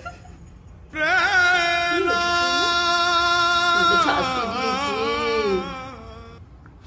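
A dog howls long and loud, with a wavering pitch.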